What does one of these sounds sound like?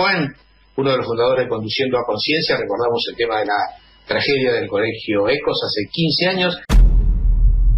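A middle-aged man speaks calmly over a phone line.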